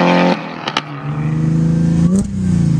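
A car engine rumbles at idle and blips.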